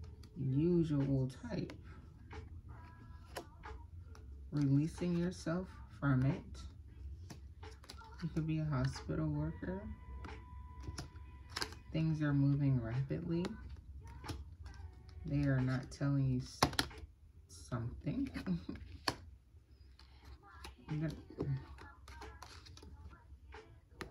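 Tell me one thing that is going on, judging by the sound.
Paper cards rustle softly in a hand.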